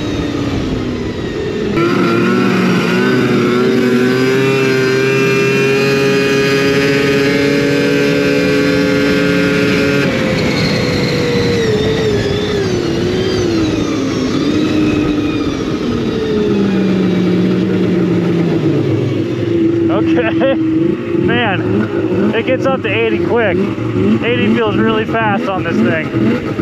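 A snowmobile engine drones loudly, rising and falling in pitch as it speeds up and slows down.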